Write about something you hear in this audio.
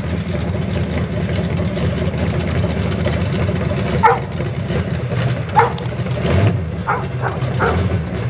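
A big truck engine rumbles deeply as it drives slowly closer.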